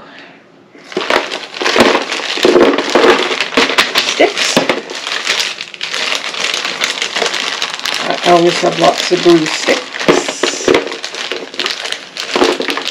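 Plastic bags crinkle and rustle in hands.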